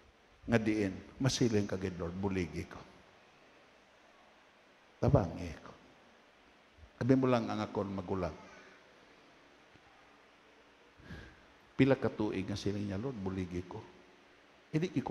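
A middle-aged man preaches slowly and earnestly through a microphone, in a large echoing hall, with long pauses.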